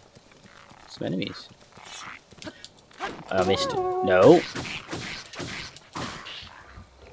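A blade slashes and clanks in a fight.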